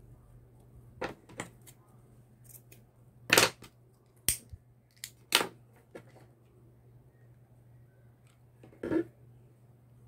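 Ribbon rustles and crinkles as hands fold and handle it.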